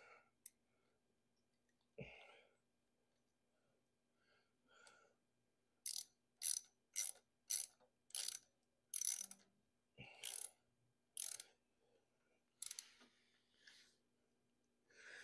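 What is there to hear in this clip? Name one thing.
Metal engine parts click and rattle as hands work on them.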